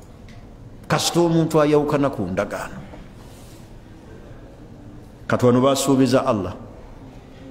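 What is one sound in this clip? A man speaks slowly and firmly into a microphone, in short bursts with pauses.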